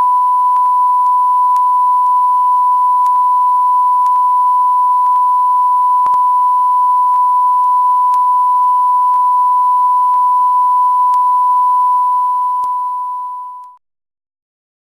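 A steady high-pitched test tone beeps without a break, then fades out into silence.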